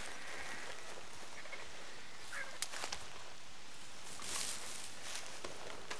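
A plant is plucked with a short rustle of leaves.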